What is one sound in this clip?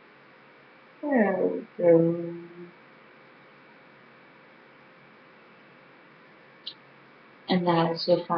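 A young woman talks close to a microphone, in bursts with pauses.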